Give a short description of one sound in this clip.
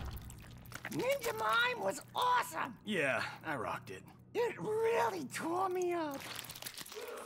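A man speaks with animation, close and clear.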